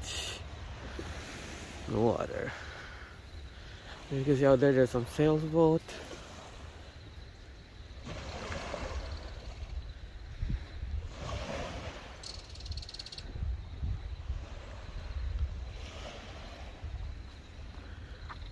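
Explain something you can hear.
Small waves lap gently against the sandy shore.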